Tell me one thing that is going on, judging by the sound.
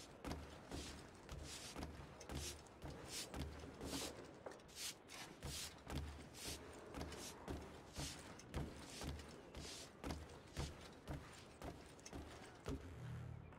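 Footsteps walk on wooden floorboards.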